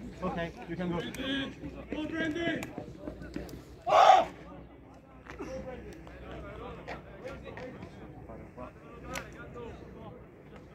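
Men shout and call out across an open playing field outdoors.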